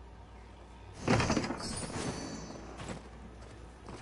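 A bright magical burst whooshes loudly and fades.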